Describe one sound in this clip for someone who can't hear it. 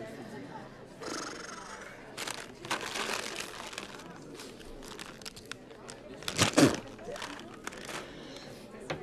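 A plastic snack bag crinkles and rustles.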